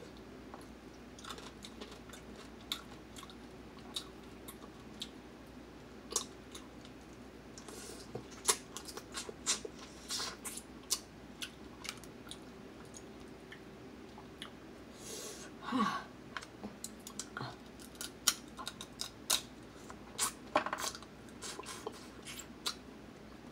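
A young woman chews and slurps loudly close to a microphone.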